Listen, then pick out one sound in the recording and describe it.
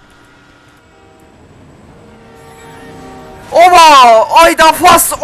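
A train horn blares close by.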